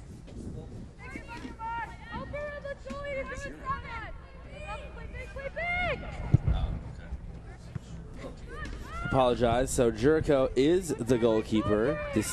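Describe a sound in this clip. Young women shout and call to each other across an open field.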